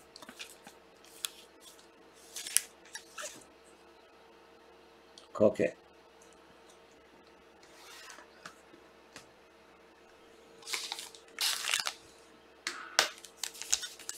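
Plastic card cases click and tap as hands handle them.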